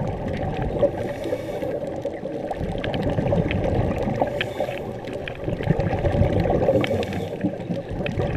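A diver's breathing regulator hisses in bursts.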